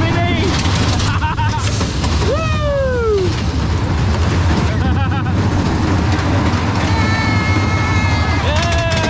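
Wind rushes loudly past on an open-air ride.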